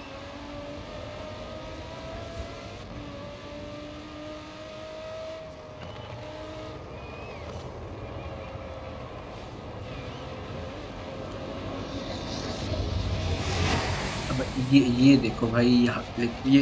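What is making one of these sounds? A race car engine roars at high speed, its pitch shifting with gear changes.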